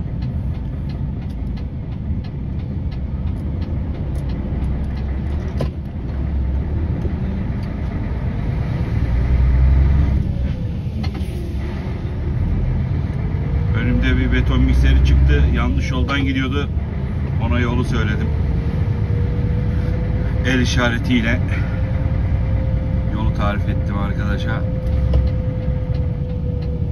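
A vehicle's engine rumbles steadily from inside as it drives along.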